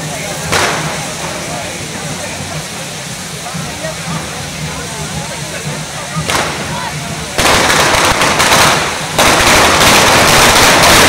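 Fireworks crackle and hiss loudly nearby.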